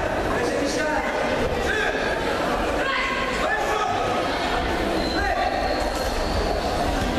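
Feet shuffle and thump on a mat as two judoka grapple.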